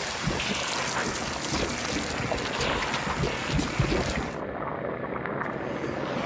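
Slime splatters against rock.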